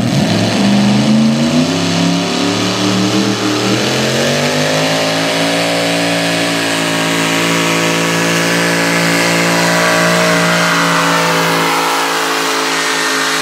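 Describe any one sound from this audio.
A tractor engine roars and rises in pitch as the tractor pulls away.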